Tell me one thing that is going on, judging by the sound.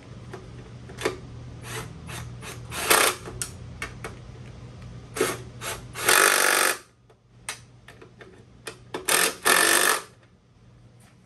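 A hand tool clicks and rattles against metal in short bursts.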